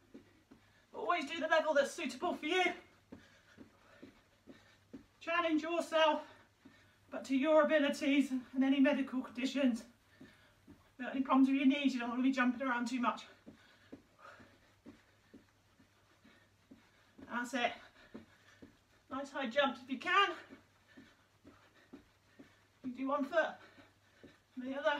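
A young woman talks with animation in short bursts, close by.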